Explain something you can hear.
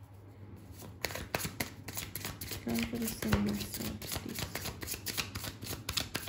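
A deck of cards is shuffled with quick, rapid flicks.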